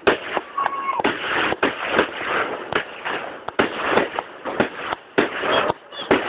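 Fireworks burst with loud cracks and bangs.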